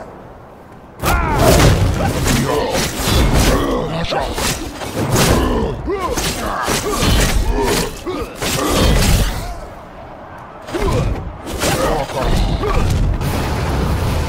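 Heavy blows thud in a fight.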